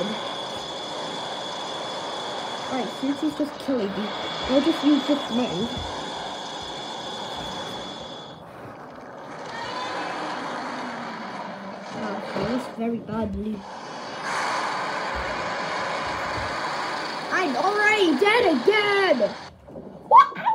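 Electronic game sound effects hum and blast from a small speaker.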